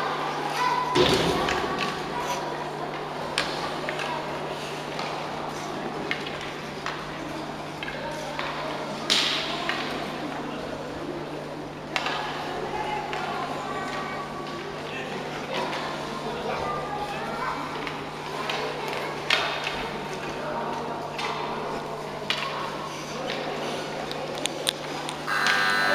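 Hockey sticks clack on the ice.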